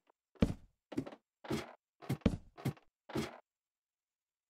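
Footsteps clunk on a wooden ladder in a quick series.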